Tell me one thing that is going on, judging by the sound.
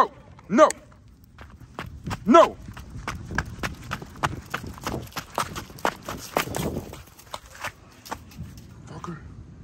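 A dog's paws patter quickly across concrete.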